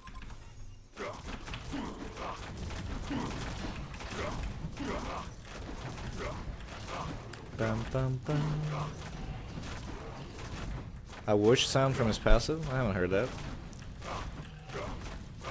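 Game spells and attacks clash and crackle.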